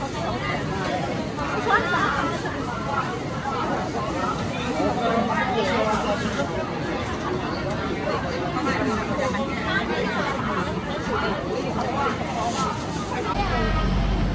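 A middle-aged woman talks cheerfully close by.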